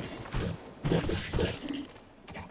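Small creatures in a game scuffle with dull thuds.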